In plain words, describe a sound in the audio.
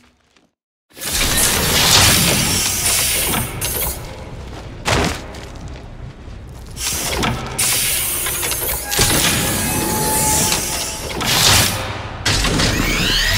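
Heavy metal panels whir and clank open and shut.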